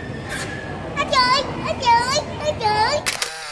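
A young boy laughs and squeals close by.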